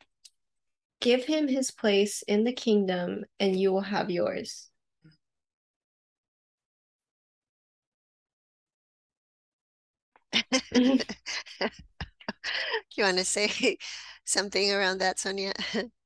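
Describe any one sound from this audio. A woman reads aloud calmly over an online call.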